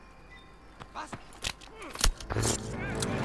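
A knife stabs a man with a dull thud.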